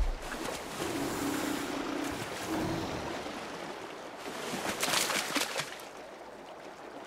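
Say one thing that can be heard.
A large animal splashes through shallow water.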